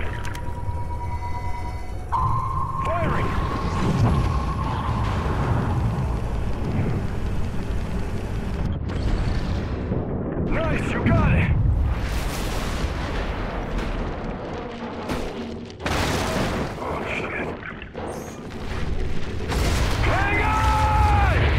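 Deep underwater rumbling goes on.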